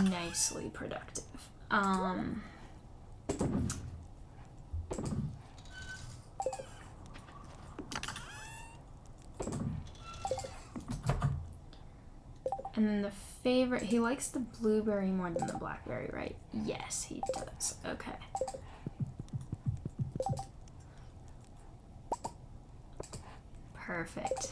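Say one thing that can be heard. Soft game menu clicks and pops sound now and then.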